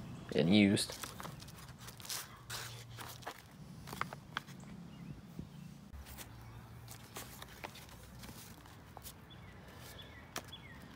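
Stiff paper crinkles and rustles close by.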